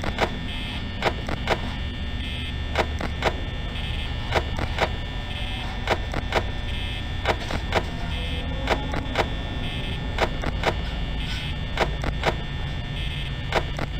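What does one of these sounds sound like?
A small electric fan whirs steadily.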